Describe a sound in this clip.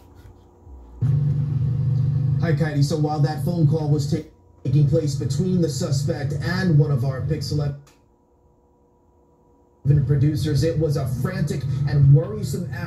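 A man reports calmly through a computer speaker.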